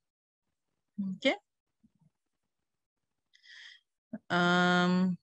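A woman speaks calmly through an online call microphone.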